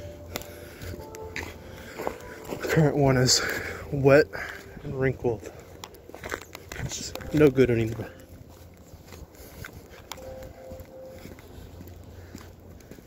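Footsteps tread on a wet, slushy path outdoors.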